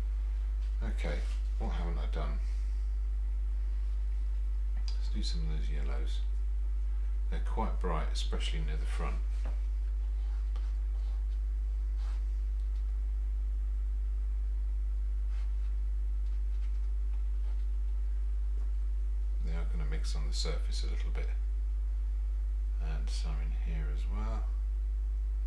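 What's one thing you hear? An older man mumbles quietly in short bursts.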